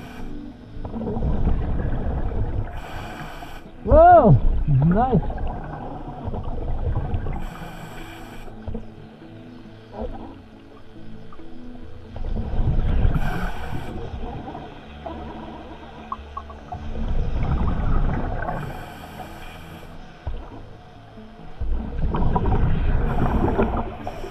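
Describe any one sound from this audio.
A diver's breath bubbles out in rumbling bursts underwater, again and again.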